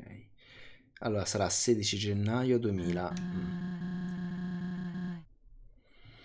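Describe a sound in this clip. A young man sings loudly and holds a long note close to a microphone.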